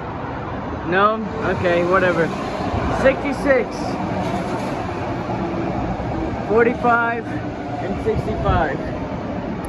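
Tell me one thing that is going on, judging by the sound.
Train brakes squeal in short, wavering bursts.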